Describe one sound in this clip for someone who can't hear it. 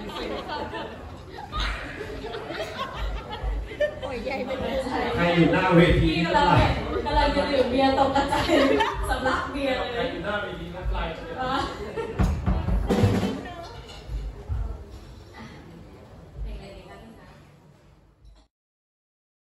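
A live band plays amplified music through loudspeakers.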